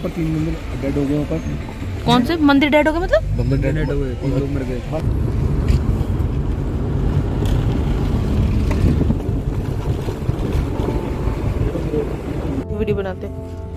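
A car engine hums and tyres rumble on the road from inside the car.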